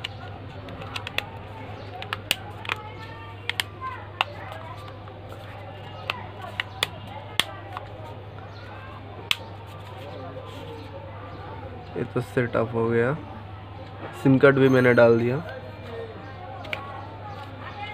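Hands handle a small plastic device, with light clicks and taps.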